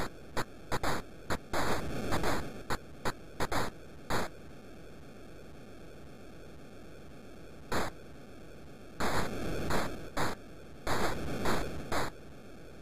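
Punches land with short electronic thuds in a retro video game.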